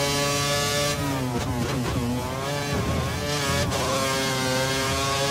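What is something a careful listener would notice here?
A racing car engine drops in pitch as the car brakes hard, then revs up again.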